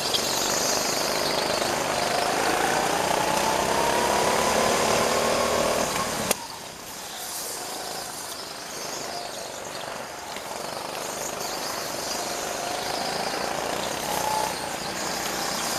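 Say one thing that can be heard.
Go-kart engines buzz and whine close by.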